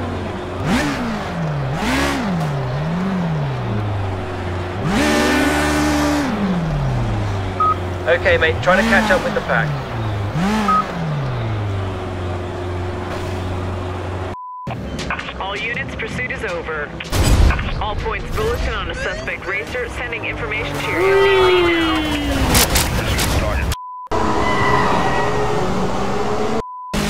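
Racing car engines rev up and down loudly.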